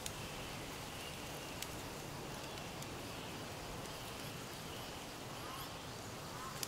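Wind blows softly through a forest.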